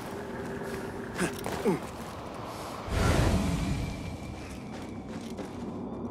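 Wind blows steadily with a dry hiss.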